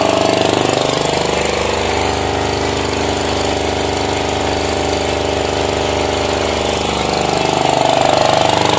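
Water pours into a bucket.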